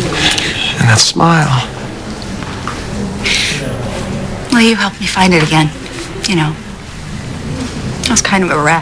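A young woman speaks softly and emotionally nearby.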